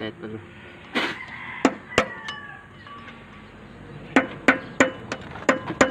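A metal tool taps and clinks against a steel gear.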